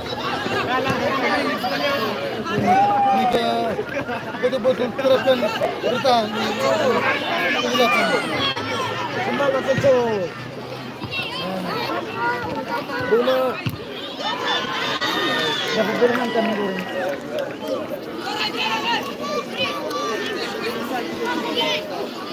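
A large outdoor crowd of men, women and children shouts and cheers.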